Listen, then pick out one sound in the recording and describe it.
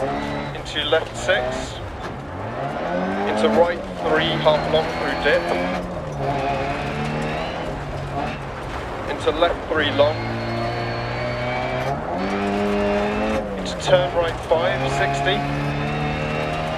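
A car engine revs up and down as gears change.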